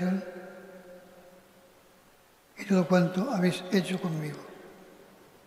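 An elderly man reads out slowly into a microphone in a large echoing hall.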